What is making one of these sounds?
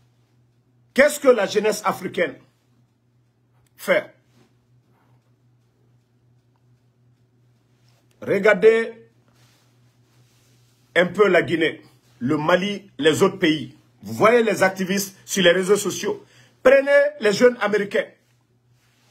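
A man speaks close to a microphone in short, animated bursts with pauses between.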